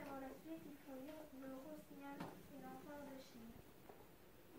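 A young girl speaks clearly in a sing-song voice close by.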